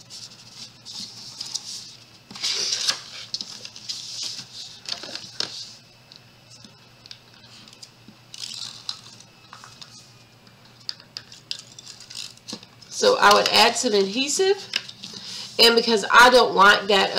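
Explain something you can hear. Paper rustles and slides as hands fold it.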